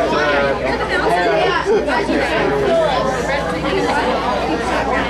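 A rock band plays loud electric guitars live.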